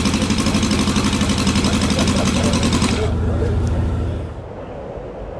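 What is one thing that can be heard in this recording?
A small engine runs fast with a loud, rapid chatter.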